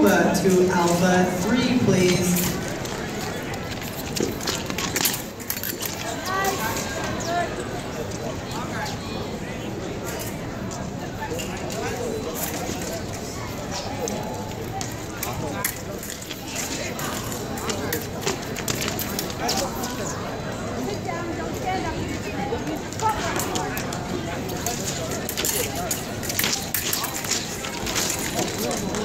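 Fencers' shoes squeak and thud on the floor.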